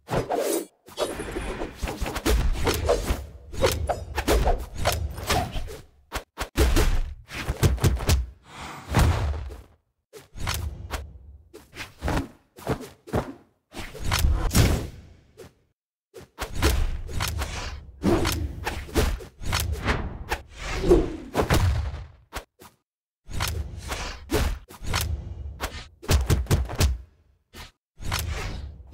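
Game weapons clash and whoosh in quick bursts.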